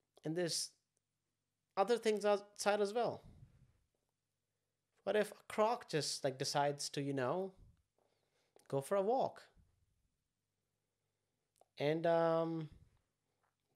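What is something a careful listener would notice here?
A young man speaks with animation, close to a microphone, in short bursts with pauses.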